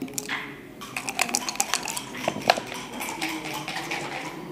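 Dice rattle in a cup and clatter onto a board.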